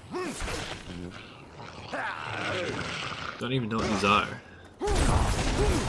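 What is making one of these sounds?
Blades swish and strike in a close fight.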